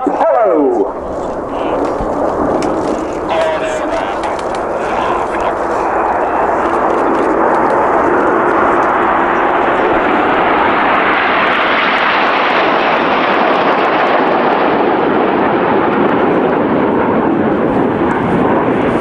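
Jet engines roar overhead, growing louder as they pass close.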